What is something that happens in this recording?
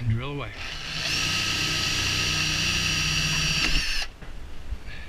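A cordless drill whirs steadily, then stops.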